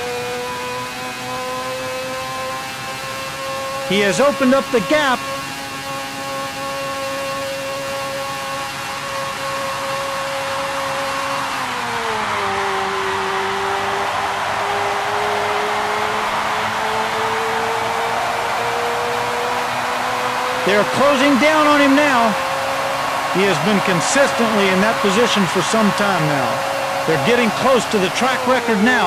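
A racing car engine whines at high pitch, dipping lower briefly and then climbing again.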